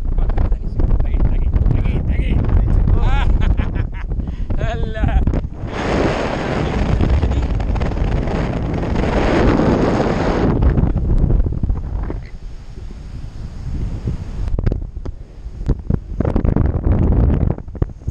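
Strong wind rushes and buffets loudly past close by, outdoors high in the air.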